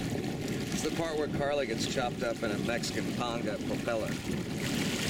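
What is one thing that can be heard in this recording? A young woman speaks from the water close by.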